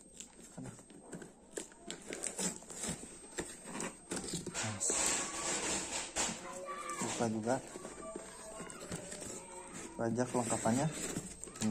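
Cardboard rustles and crinkles as it is handled.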